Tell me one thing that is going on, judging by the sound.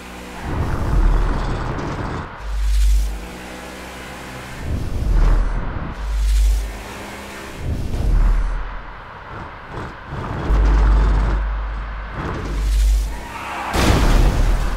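A car engine revs and roars as the car speeds along.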